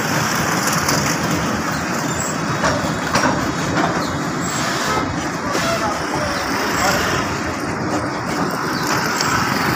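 Motorcycle engines hum as they pass nearby.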